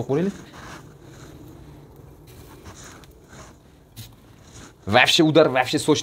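Oil sizzles softly in a frying pan.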